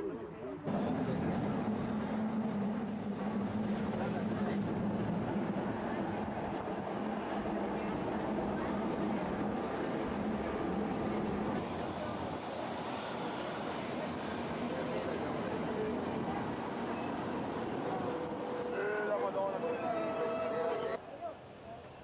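Wind rushes past an open train carriage.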